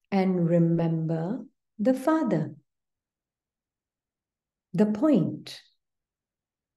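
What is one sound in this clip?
A middle-aged woman speaks slowly and calmly through an online call.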